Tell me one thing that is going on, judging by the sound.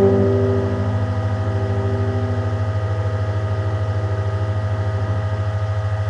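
A piano chord rings out and slowly fades.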